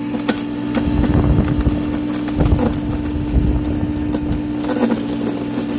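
Branches crunch and crack as they are fed into a garden shredder.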